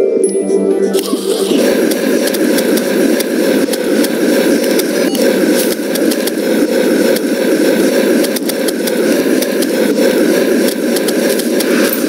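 A magic weapon in a video game zaps and crackles rapidly.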